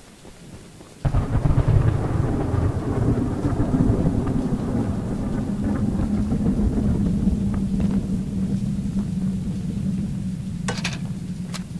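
Strong wind roars and rushes loudly.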